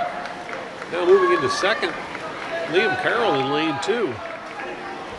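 A crowd of spectators shouts and cheers loudly in bursts.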